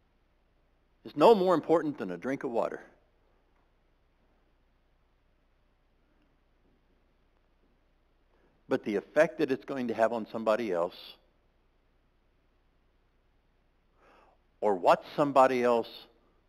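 A man speaks calmly in bursts through a microphone in a large room.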